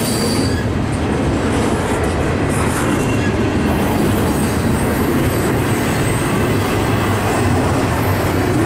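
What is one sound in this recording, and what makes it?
A freight train rumbles past close by in a steady, heavy roar.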